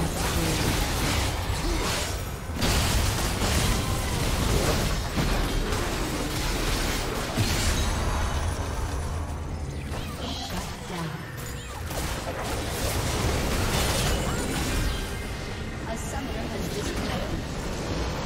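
Spell blasts and impacts crackle and boom in a game battle.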